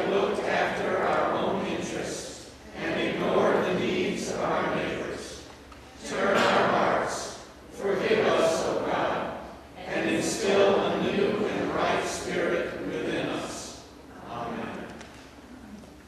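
A man reads aloud calmly through a microphone in a large echoing hall.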